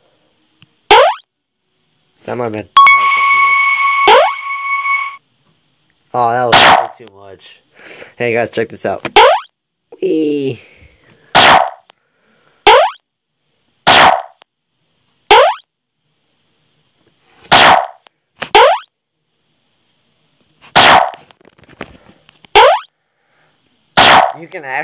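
A game's bottle lands with short swooshing thuds, again and again.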